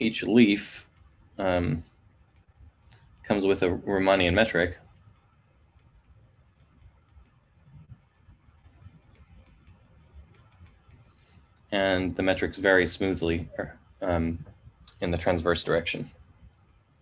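A man speaks calmly into a microphone, explaining in short phrases with pauses.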